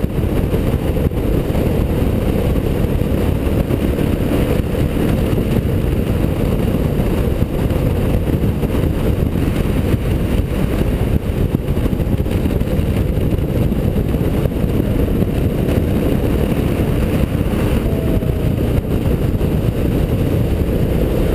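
A motorcycle engine drones at cruising speed.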